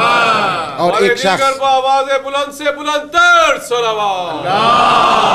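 A middle-aged man chants in a drawn-out voice.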